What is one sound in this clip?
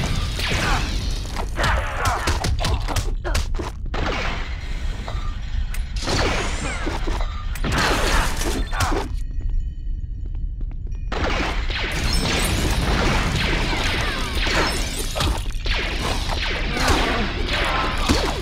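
Studs jingle as they are collected.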